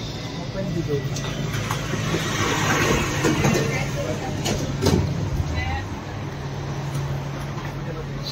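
A tram hums steadily as it moves.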